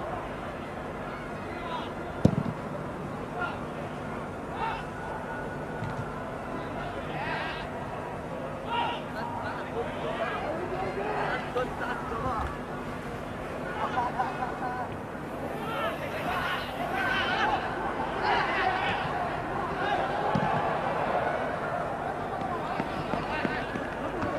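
A stadium crowd murmurs and cheers in the distance, growing louder as play nears the goal.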